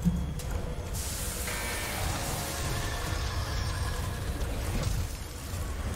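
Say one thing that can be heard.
Steam hisses loudly.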